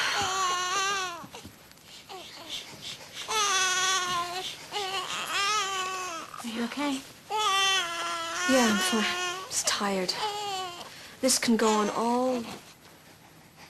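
A young woman speaks urgently and with emotion nearby.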